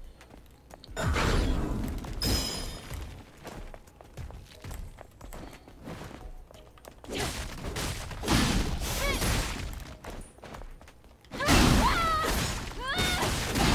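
Sword strikes and heavy impacts clash in bursts.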